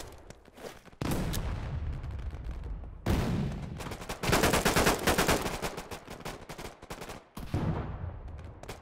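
A rifle fires loud rapid shots with a sharp echo.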